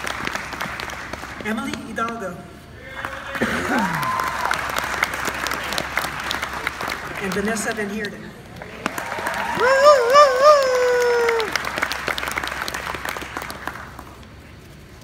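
An outdoor crowd applauds.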